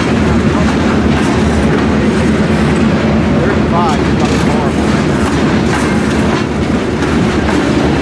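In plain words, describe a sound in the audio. A long freight train rumbles and clatters steadily past on the rails nearby.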